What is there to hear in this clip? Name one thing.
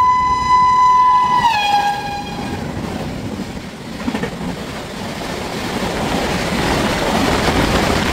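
A passing train's carriages rumble and clatter steadily on the rails.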